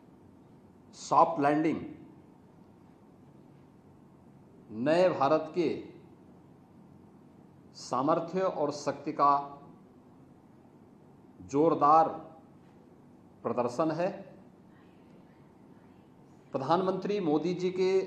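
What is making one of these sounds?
A middle-aged man speaks calmly in short phrases with pauses, close to a microphone.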